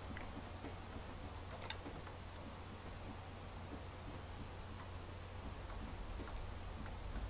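Small hammers tap now and then on wood.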